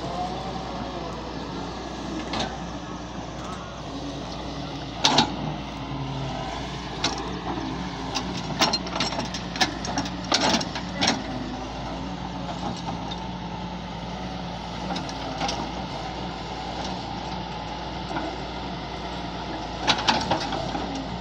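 A diesel engine rumbles steadily nearby.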